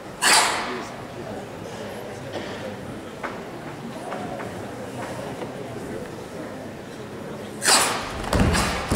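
Young women shout sharply together.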